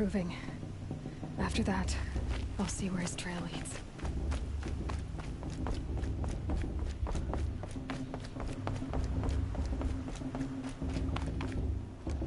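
Quick footsteps run over dirt and then thump across wooden planks.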